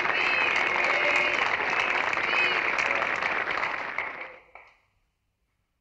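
A crowd of young people cheers and shouts excitedly.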